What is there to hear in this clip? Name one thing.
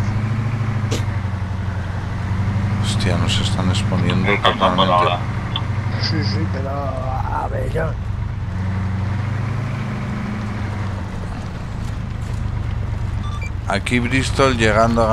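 A vehicle engine rumbles steadily throughout.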